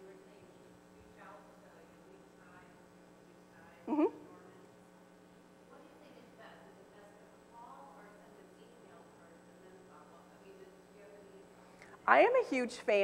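A woman speaks faintly from across an echoing hall.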